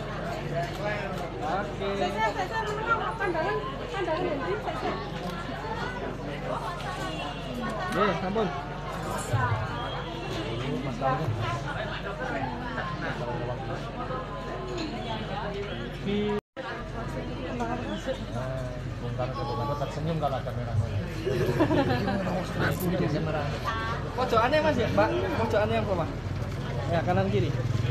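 Several people talk and murmur nearby.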